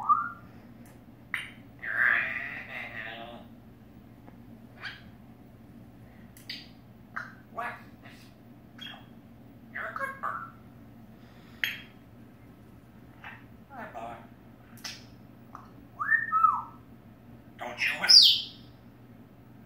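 A parrot whistles close by.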